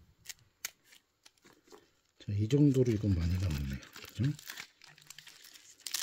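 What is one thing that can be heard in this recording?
Stiff pineapple leaves rustle and crackle as hands handle them.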